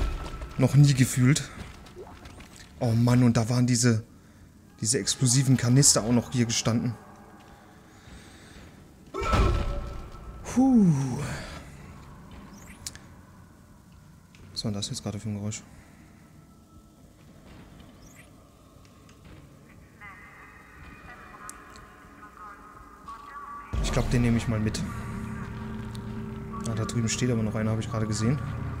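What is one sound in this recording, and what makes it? A man talks into a close microphone.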